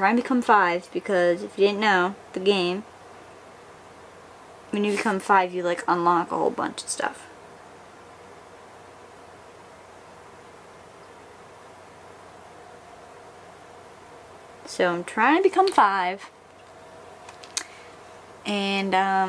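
A young woman talks calmly and casually close to a microphone.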